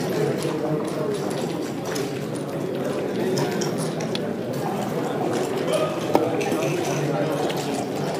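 Game pieces click and clack as they are slid and set down on a board.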